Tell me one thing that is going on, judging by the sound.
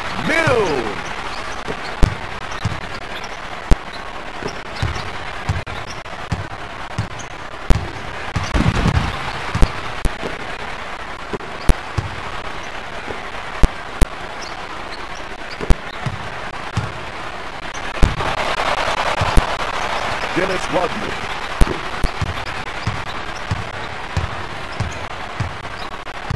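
A basketball bounces on a hardwood court in a video game.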